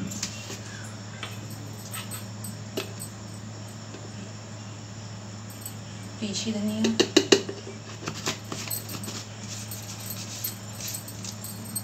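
Spices rattle in a glass jar as it is shaken.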